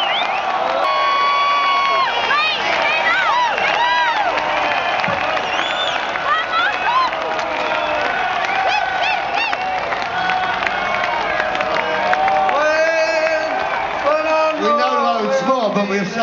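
A large concert crowd cheers and whistles.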